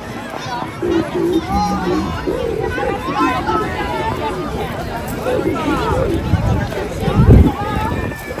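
Children shout and squeal excitedly.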